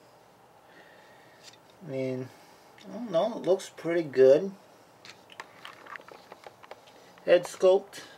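Plastic parts of a toy click softly as a hand moves it.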